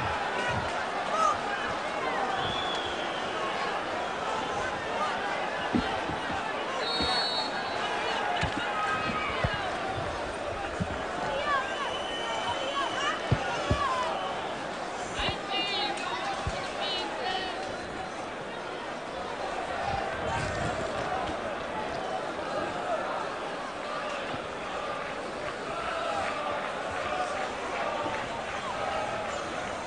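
A large stadium crowd roars and chants throughout.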